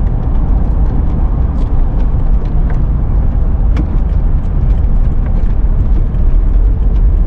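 A car engine hums steadily with low road rumble from inside the car.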